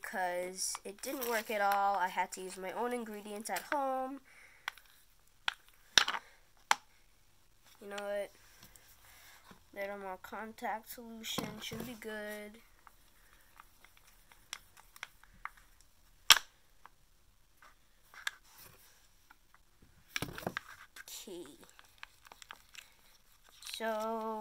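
A young girl talks calmly and close by.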